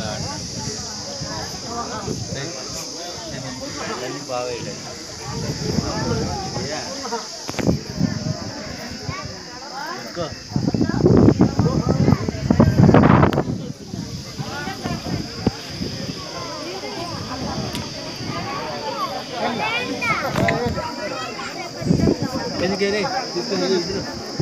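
A crowd of men and women murmurs and talks outdoors.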